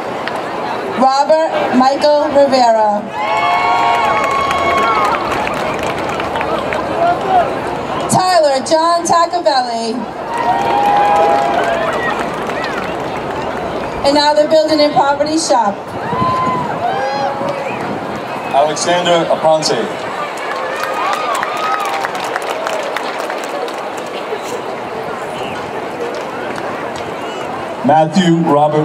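A woman reads out names over a loudspeaker, heard outdoors with an echo.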